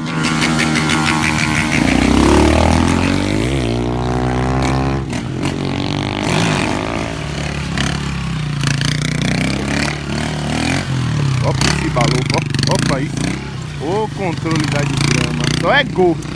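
A motorcycle engine revs loudly and changes pitch.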